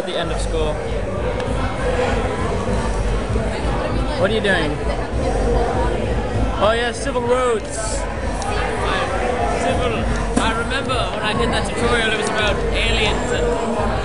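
Many people chatter in a noisy room.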